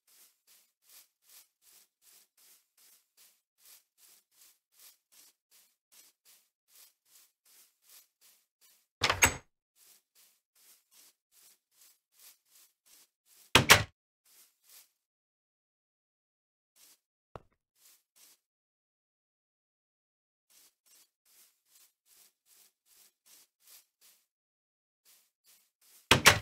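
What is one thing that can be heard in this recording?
Footsteps tread softly and quickly on grass.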